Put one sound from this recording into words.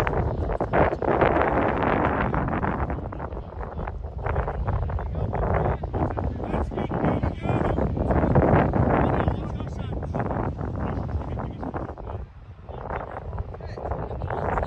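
Wind buffets the microphone outdoors in gusts.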